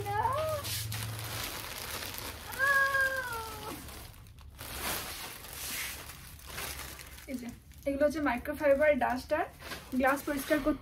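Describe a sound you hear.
Plastic bags rustle and crinkle as they are pulled from a shelf.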